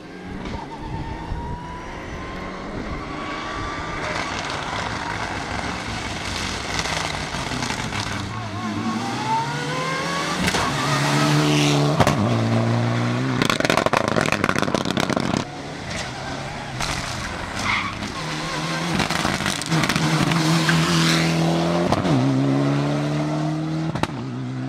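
A rally car engine revs hard and roars past.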